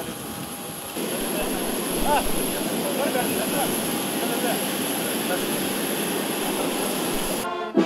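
A crowd of people chatters and murmurs nearby.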